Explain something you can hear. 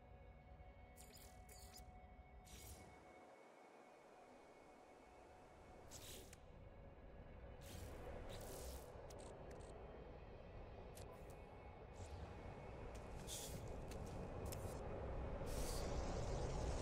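Short electronic clicks and blips sound as menu items are selected.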